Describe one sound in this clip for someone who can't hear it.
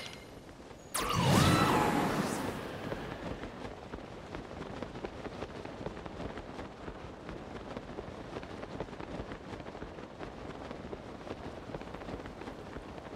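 Wind rushes past steadily after a sudden gust.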